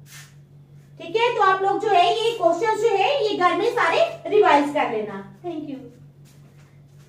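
A woman speaks clearly and with animation, close to a microphone.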